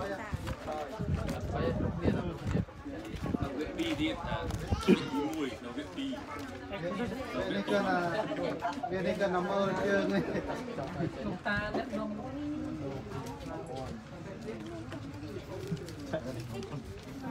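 Many children chatter and murmur close by.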